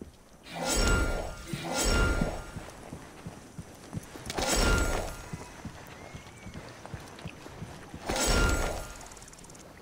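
A blade slices through wet flesh in short, rough bursts.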